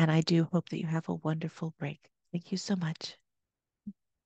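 A woman speaks with animation into a microphone, close by.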